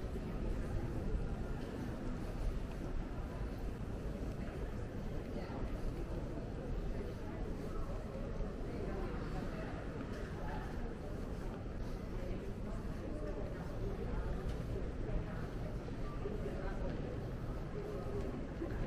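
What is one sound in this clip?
A low murmur of distant voices fills a large echoing hall.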